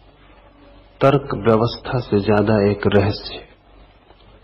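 An elderly man speaks calmly and slowly through a microphone.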